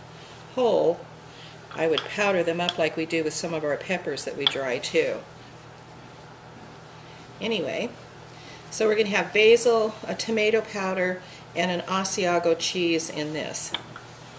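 A metal spoon clinks against glass cups.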